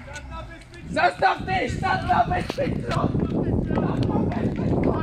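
Running footsteps slap on paving stones.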